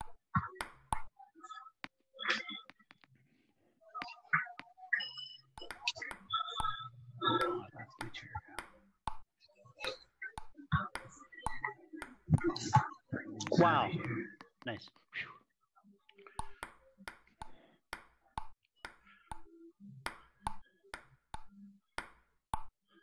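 A table tennis ball bounces with sharp, quick clicks.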